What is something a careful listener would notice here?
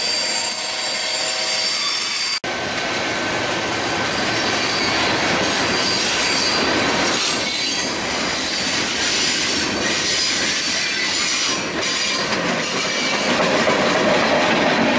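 Freight train cars rumble and clatter loudly along the tracks close by.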